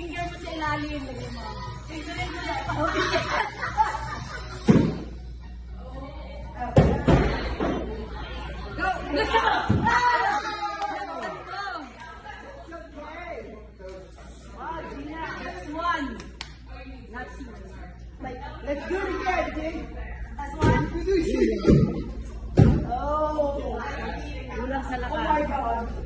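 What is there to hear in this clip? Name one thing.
A young woman talks nearby with animation.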